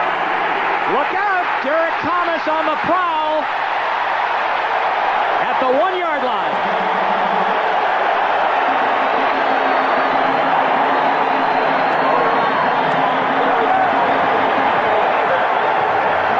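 A large stadium crowd roars and cheers loudly.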